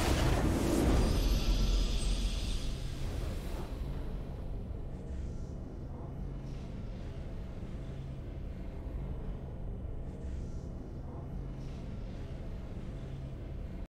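A triumphant fanfare plays at the end of a game.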